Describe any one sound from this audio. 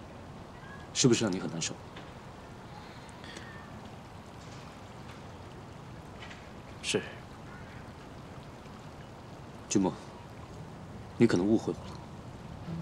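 A young man speaks calmly in short phrases, close by.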